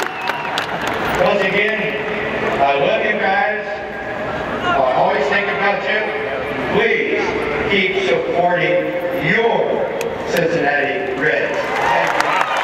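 An elderly man speaks calmly through loudspeakers that echo around the stadium.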